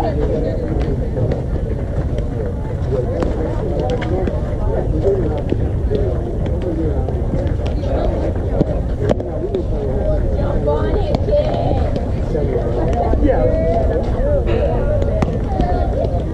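A softball pops into a catcher's mitt.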